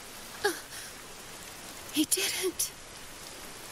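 A young woman gasps in shock.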